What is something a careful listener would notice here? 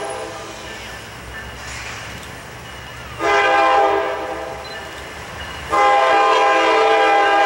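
A diesel locomotive rumbles as it rolls closer.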